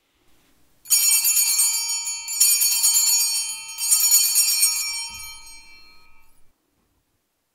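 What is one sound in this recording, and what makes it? Small hand bells ring out three times and slowly fade.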